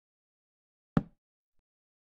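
A stone block thuds into place.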